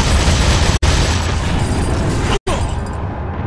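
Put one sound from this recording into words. A pistol fires in loud bursts.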